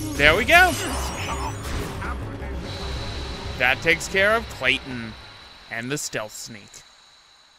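A sword strikes with bright magical bursts.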